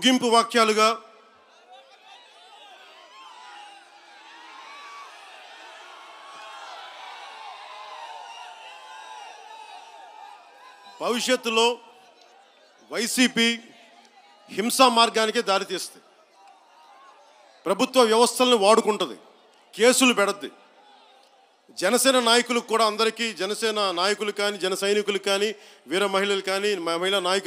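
A man speaks forcefully into a microphone through loudspeakers, in short bursts.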